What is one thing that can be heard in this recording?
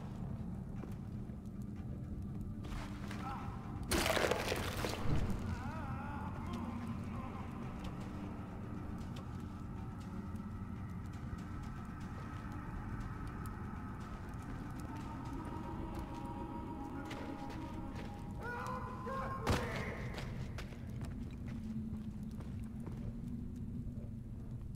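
A torch fire crackles and roars steadily.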